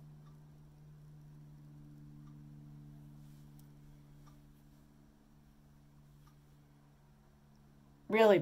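A brush sweeps softly across skin.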